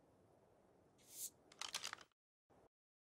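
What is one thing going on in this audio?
Game interface sounds click and chime as paint is applied.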